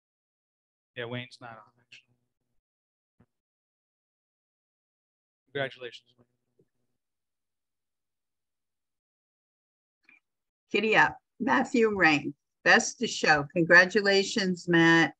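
A woman speaks calmly over an online call, in short remarks with long pauses.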